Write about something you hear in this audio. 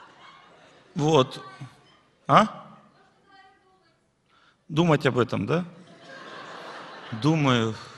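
A middle-aged man speaks calmly into a microphone.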